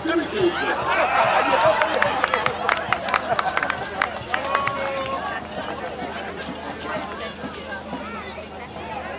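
A crowd of adults and children chatters and calls out nearby outdoors.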